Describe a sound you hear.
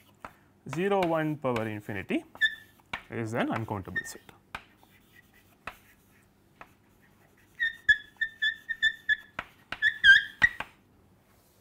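Chalk taps and squeaks on a board.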